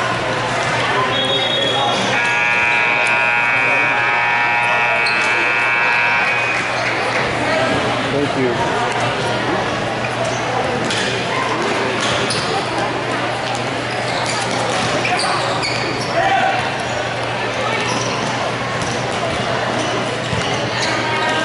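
Shoes squeak on a hard court in a large echoing hall.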